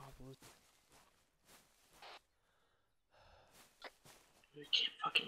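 Footsteps rustle through dry grass and leaves.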